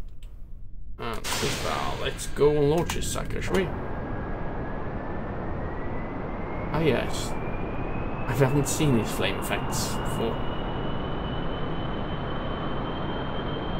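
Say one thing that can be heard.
Jet engines roar steadily as a plane speeds up, with a whine that slowly rises.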